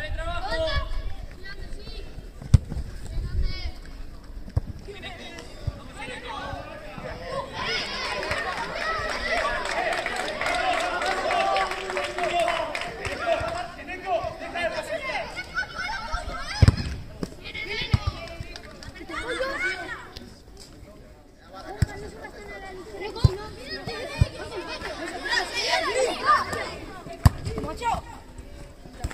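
Young boys shout and call out across an open pitch.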